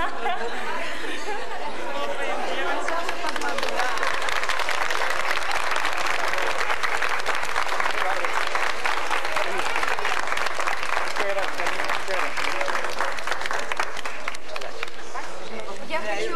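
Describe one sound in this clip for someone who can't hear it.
A crowd applauds and cheers loudly nearby.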